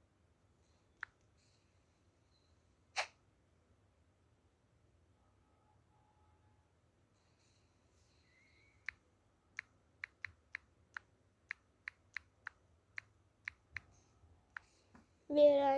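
Phone keyboard keys click in quick, short taps.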